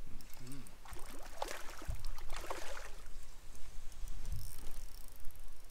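Water splashes as a fish is netted beside a boat.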